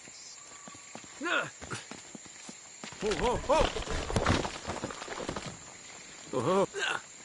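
Footsteps scuff across stone and leaves.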